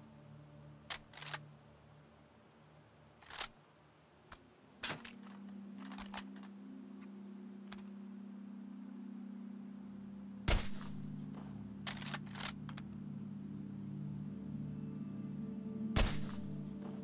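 A rifle fires with a sharp crack.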